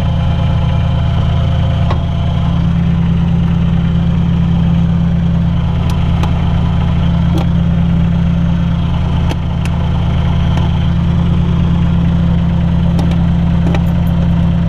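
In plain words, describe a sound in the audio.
An engine drones loudly and steadily close by.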